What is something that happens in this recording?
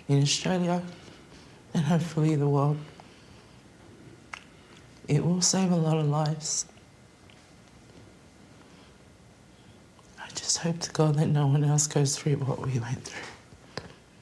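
A woman speaks in a tearful, trembling voice close to a microphone.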